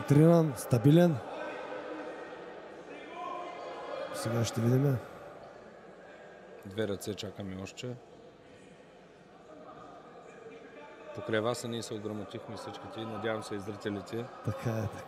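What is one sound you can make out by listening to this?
Men in a crowd shout and cheer loudly in a large echoing hall.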